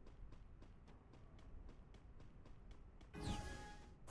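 Footsteps crunch on snow as a game character runs.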